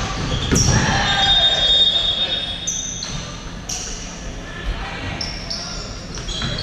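A ball thumps as players kick it.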